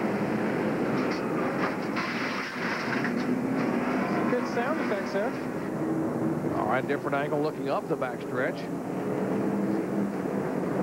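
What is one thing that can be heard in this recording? Race car engines roar loudly.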